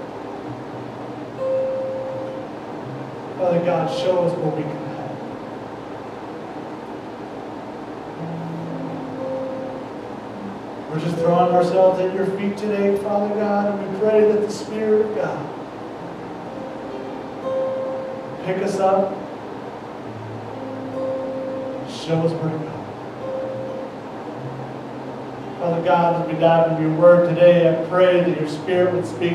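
An acoustic guitar strums chords steadily.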